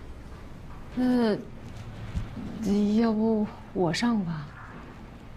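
A woman speaks hesitantly.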